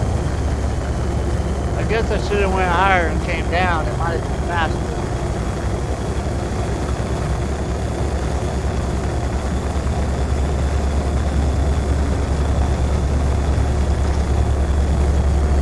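A spacecraft engine hums steadily in flight.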